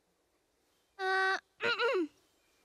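A young girl speaks in a small, high, hesitant voice.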